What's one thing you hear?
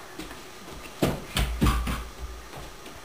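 Footsteps thump on a wooden floor.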